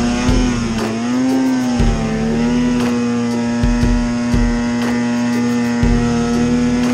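A snowmobile thumps and knocks over bumps in the snow.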